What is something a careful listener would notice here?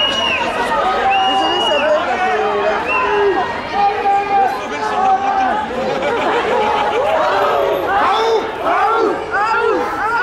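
A large crowd chants and shouts together outdoors.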